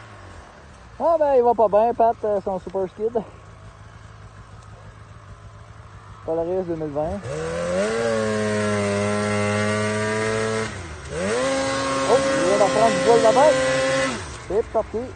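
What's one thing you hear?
A snowmobile engine revs hard in loud bursts.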